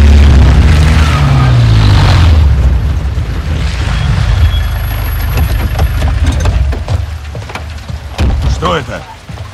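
A vehicle engine rumbles low and loud, then fades.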